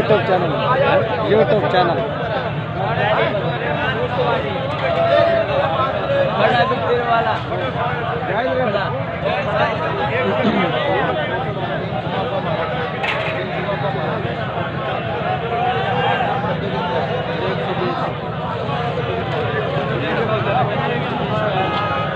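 Many people chatter in a busy outdoor market.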